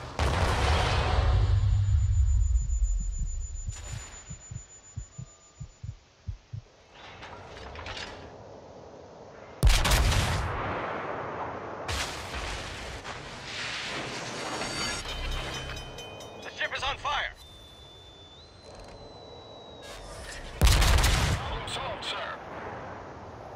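Heavy guns fire with loud, deep booms that roll away.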